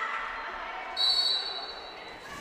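A referee blows a short, sharp whistle in a large echoing hall.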